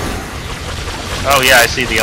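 A magic blast bursts with a loud crackling whoosh.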